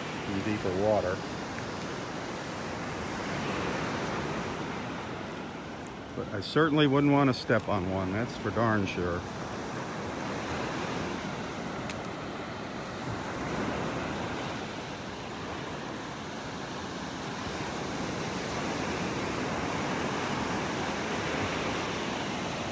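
Small waves wash steadily onto a sandy shore nearby.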